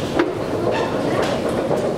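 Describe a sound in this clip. An escalator hums and rumbles steadily nearby.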